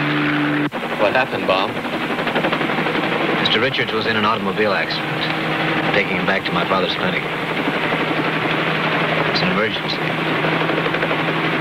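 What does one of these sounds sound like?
A man speaks over a handheld radio microphone.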